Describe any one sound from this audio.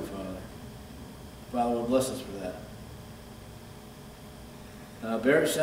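An elderly man speaks calmly into a microphone, with pauses.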